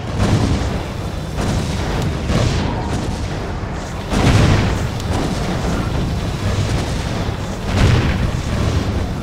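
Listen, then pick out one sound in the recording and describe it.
Laser turrets fire in rapid bursts.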